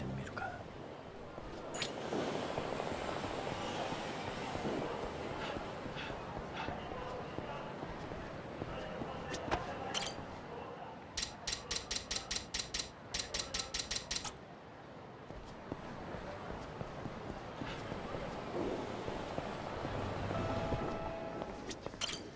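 Footsteps patter on pavement as a man runs.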